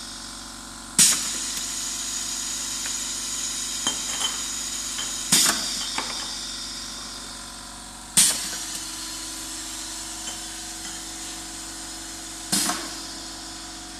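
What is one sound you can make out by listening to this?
Pneumatic valves hiss sharply in short bursts.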